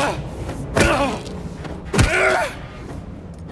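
A metal pipe strikes a body with heavy thuds.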